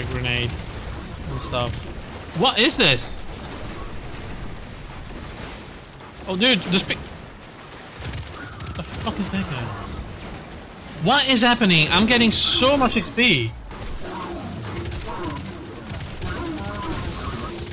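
A rifle fires a series of shots.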